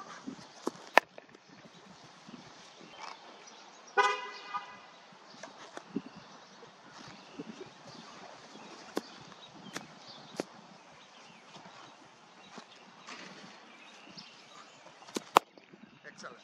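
A cricket bat cracks against a leather ball outdoors.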